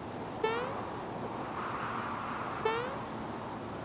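A cartoon jump sound effect springs upward twice.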